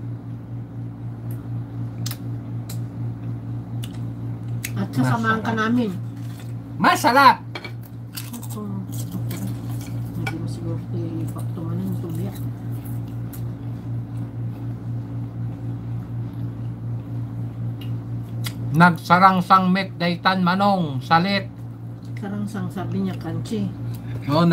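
Cutlery clinks against plates.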